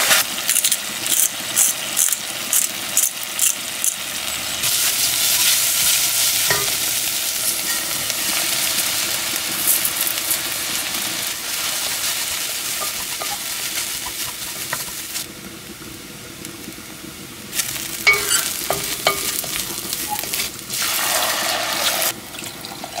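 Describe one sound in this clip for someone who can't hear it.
A wooden spoon scrapes and stirs in a pot.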